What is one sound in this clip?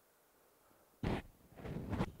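A man blows his nose.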